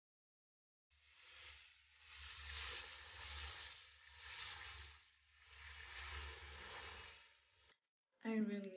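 Water pours from a tap into a bathtub.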